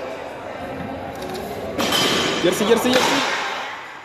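Weight plates on a loaded barbell clank as a man lifts it.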